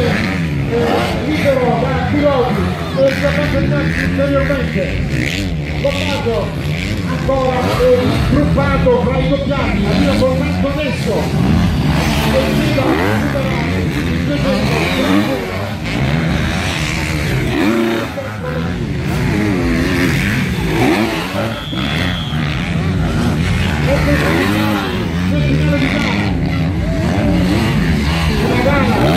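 Dirt bike engines rev and whine across the sand.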